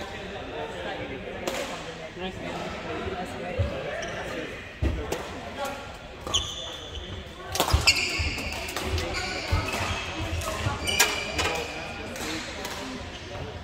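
Shuttlecocks are struck with rackets in sharp pops, echoing in a large hall.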